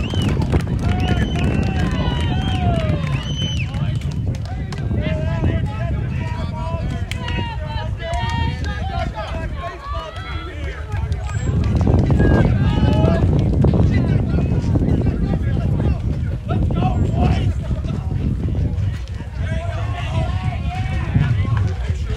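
Young men call out to each other from across the field.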